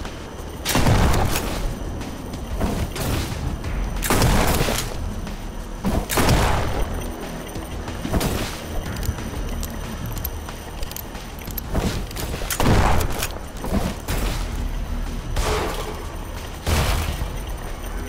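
Gunshots boom loudly, one after another.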